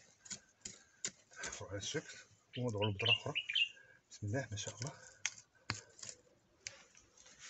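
A small hand hoe chops and scrapes into dry soil.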